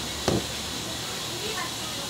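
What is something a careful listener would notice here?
Hands pat and press soft dough.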